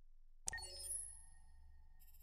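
A short notification chime rings out.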